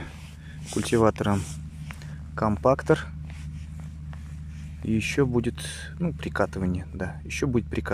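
A shovel scrapes into loose soil.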